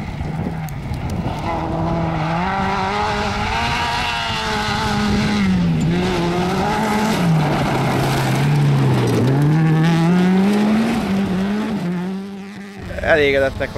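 A rally car engine roars and revs hard as the car passes close by.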